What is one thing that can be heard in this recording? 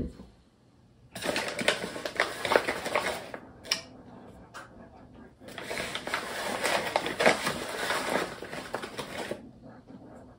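Flour rustles and pours from a scoop into a bowl.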